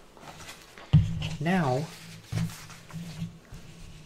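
A sheet of paper slides and rustles across a surface.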